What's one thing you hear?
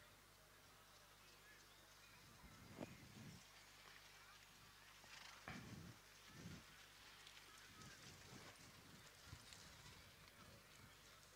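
A trotting horse's hooves thud on a dirt track.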